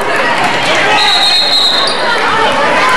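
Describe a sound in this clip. A referee blows a sharp whistle.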